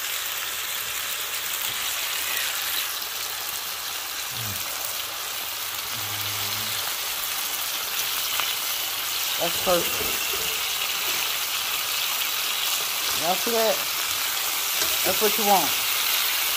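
Meat sizzles and crackles steadily in a hot pan.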